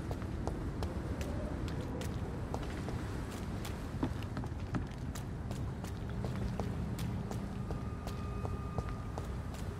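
Footsteps tread steadily on wet stone.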